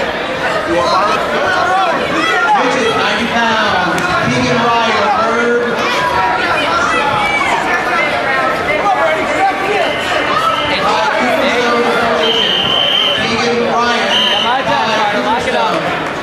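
A crowd of spectators shouts and cheers, echoing in a large hall.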